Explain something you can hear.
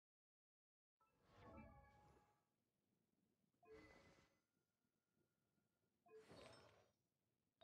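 Soft chiming menu sounds ring out in a game, each followed by a short shimmer.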